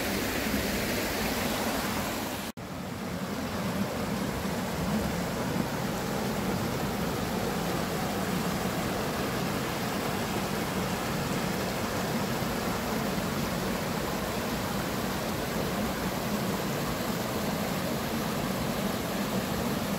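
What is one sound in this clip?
Water rushes and splashes steadily over rocks in a shallow stream.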